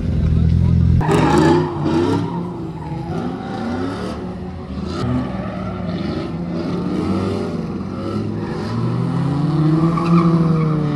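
Tyres screech loudly on tarmac.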